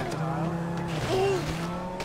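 A car engine hums close by and drives away.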